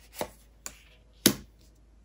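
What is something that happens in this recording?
Cards slide and tap softly against one another.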